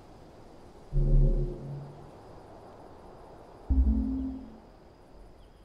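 Low electronic menu tones chime twice.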